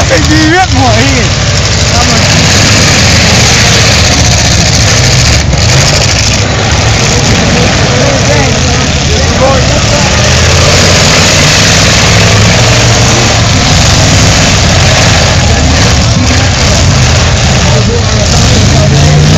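Car engines roar loudly as wheels spin in place.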